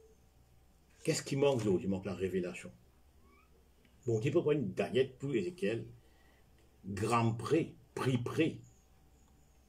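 An elderly man speaks calmly and close by, in short bursts with pauses.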